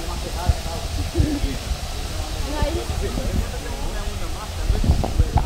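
Water laps and ripples outdoors.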